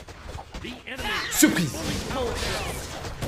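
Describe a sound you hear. Video game spells crackle and blast during a fight.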